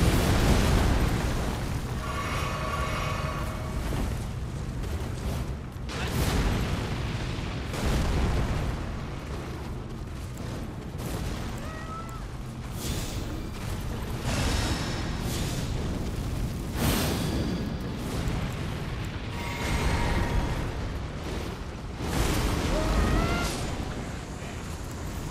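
Heavy blows and crashes ring out as a huge beast attacks.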